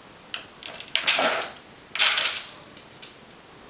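Dry pet food rattles and scatters across a hard floor.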